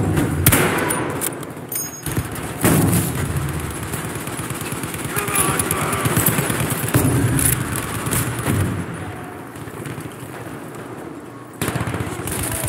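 A rifle fires loud, echoing shots.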